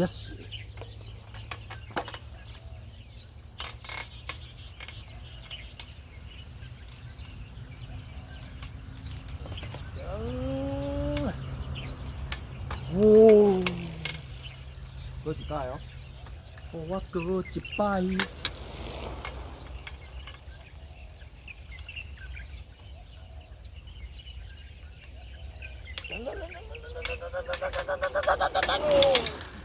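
A bicycle rolls past close by several times, its tyres humming on the road.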